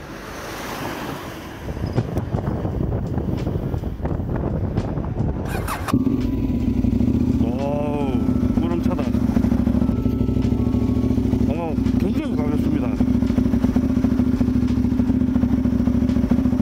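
A motorcycle engine runs and then idles steadily.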